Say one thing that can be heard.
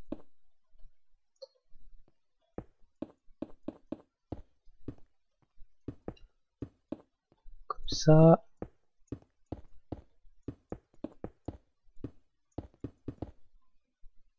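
Stone blocks are placed one after another with quick, soft knocks.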